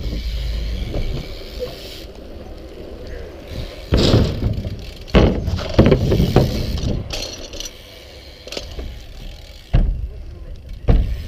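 Bicycle tyres roll over rough pavement.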